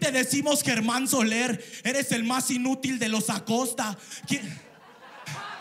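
A young man raps fast and loudly into a microphone.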